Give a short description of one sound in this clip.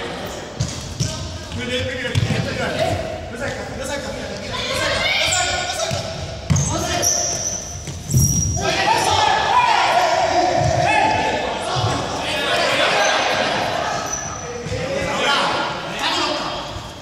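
Sneakers squeak and thud on a hard floor.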